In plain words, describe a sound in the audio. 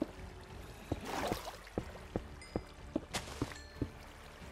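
Water splashes in short bursts.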